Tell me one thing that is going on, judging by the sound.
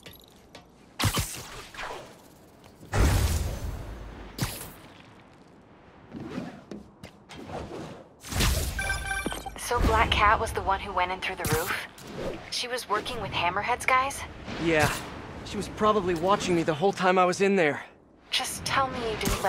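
Air whooshes past in bursts during fast swings through the air.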